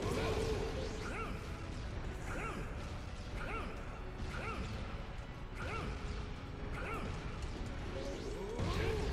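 Energy blasts whoosh and crackle.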